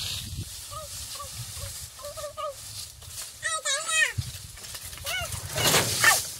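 A young child calls out in a high voice.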